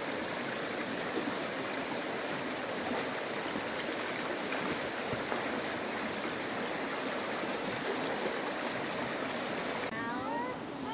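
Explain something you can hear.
A shallow stream rushes steadily over stones.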